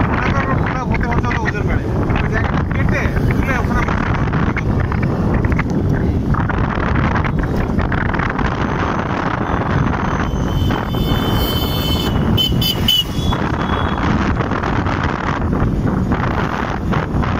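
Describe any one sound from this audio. Wind buffets the microphone on a moving motorbike.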